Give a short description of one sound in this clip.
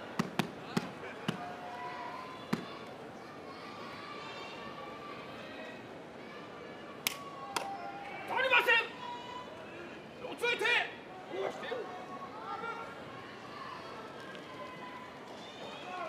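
A large crowd murmurs in a big echoing hall.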